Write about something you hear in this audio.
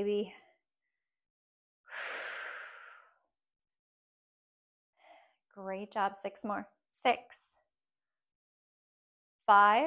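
A woman speaks calmly and clearly, close by, with pauses.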